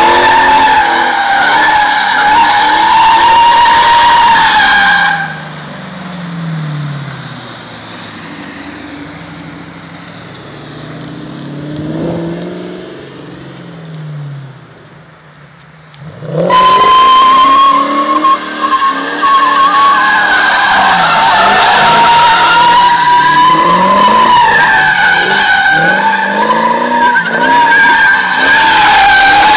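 A V8 Mustang engine revs hard while drifting.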